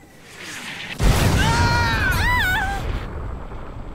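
A young man cries out in shock.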